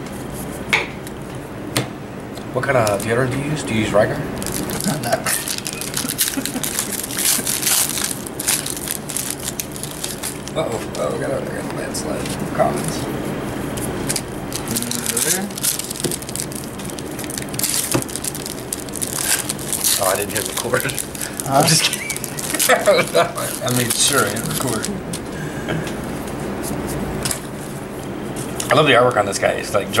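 Playing cards shuffle and slap together in hands.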